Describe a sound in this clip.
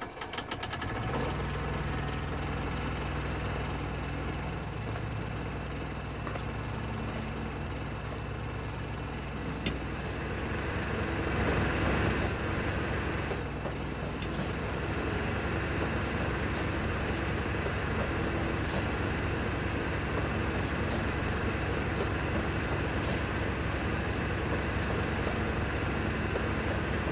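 A diesel engine drones steadily at idle.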